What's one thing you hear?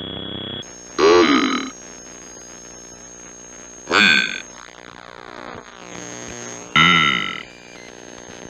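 Short electronic jingles sound in bursts.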